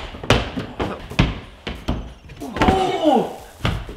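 A man lands with a thump on a padded floor.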